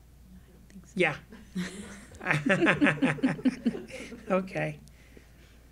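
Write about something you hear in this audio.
A middle-aged man laughs heartily.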